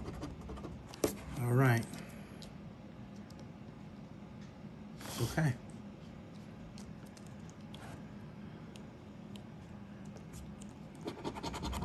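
A coin scratches across a scratch-off ticket.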